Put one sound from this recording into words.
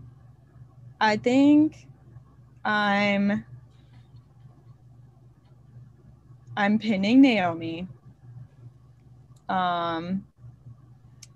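A young woman talks over an online call.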